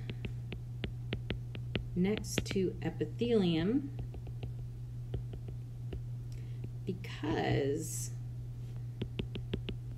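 A stylus taps and scratches on a tablet.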